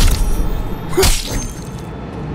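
Electric sparks crackle and snap briefly.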